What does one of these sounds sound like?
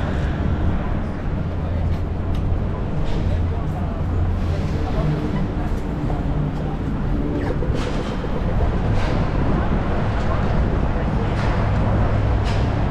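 Traffic rumbles steadily in a busy city street outdoors.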